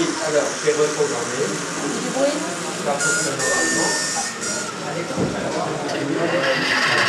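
A model train hums and clatters softly along its track.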